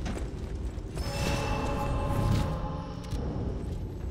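A shimmering magical chime rings out.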